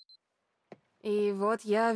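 A young woman speaks quietly and tensely close by.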